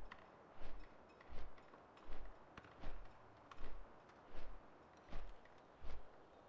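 Large wings beat with a whoosh in a steady, regular rhythm.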